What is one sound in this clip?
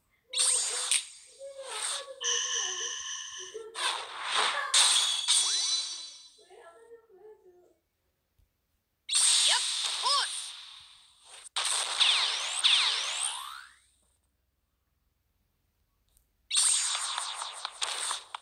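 Game sound effects whoosh and clash in bursts during a battle.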